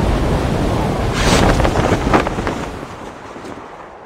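A parachute snaps open.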